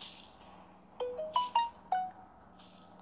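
A short rising electronic chime sounds.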